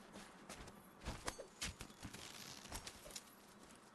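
Dense stalks rustle and swish as someone pushes through them.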